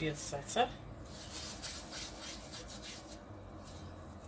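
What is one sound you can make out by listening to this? Hands pat and press cheese onto pizza dough with a soft rustle.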